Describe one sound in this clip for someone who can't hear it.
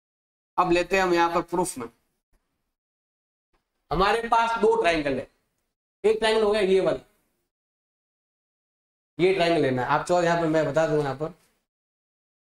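A man speaks clearly and steadily into a close microphone, explaining in bursts.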